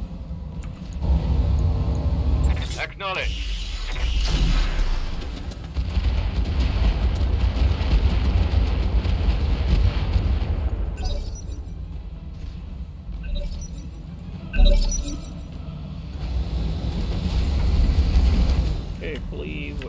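A large war machine rumbles with a deep, heavy drone.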